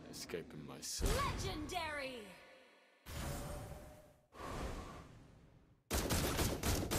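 Game spell effects whoosh and crackle in bursts.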